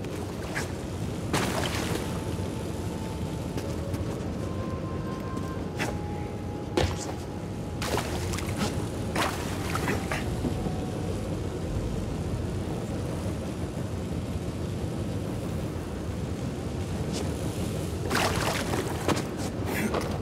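Footsteps thud and scuff on stone.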